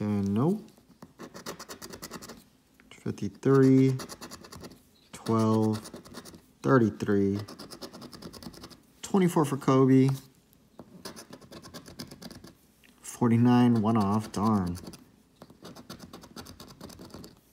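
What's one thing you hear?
A coin scrapes repeatedly across a scratch card.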